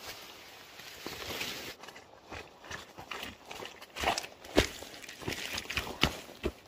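Footsteps crunch on dry leaves and twigs close by.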